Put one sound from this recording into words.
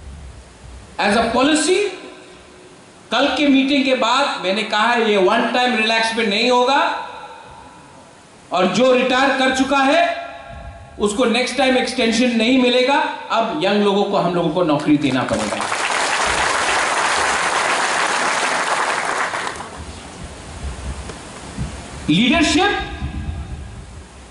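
A man speaks forcefully through a microphone and loudspeakers.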